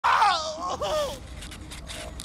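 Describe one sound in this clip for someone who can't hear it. A man groans and shouts in pain, close by.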